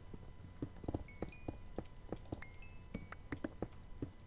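Small items pop with short high blips as they are picked up.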